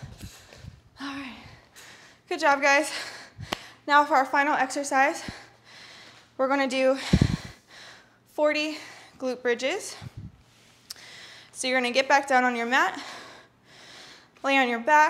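A young woman speaks clearly to the listener.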